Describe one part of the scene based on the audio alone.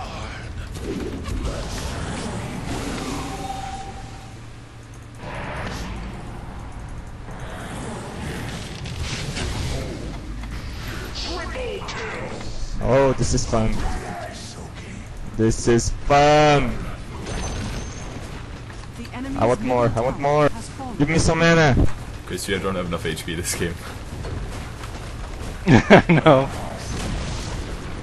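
Magic spells whoosh and crackle in a fantasy battle.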